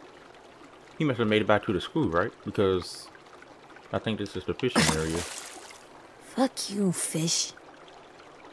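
A young boy speaks quietly and in frustration.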